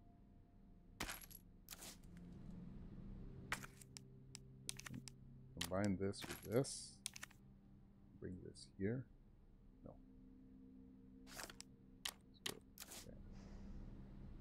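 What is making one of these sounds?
Game menu clicks and beeps sound.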